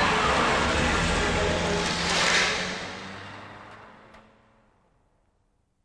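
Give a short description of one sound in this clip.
A car engine roars loudly and fades away.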